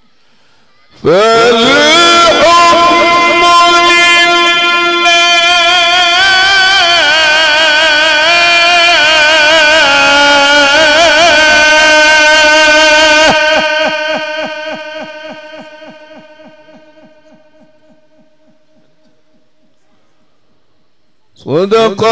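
An elderly man chants loudly and melodiously into a microphone, echoing through a loudspeaker system.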